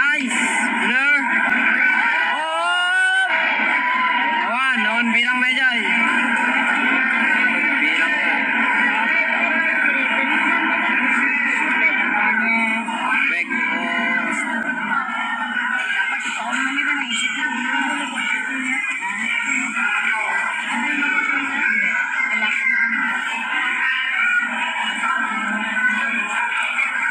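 A crowd of spectators chatters and shouts in a large, echoing space.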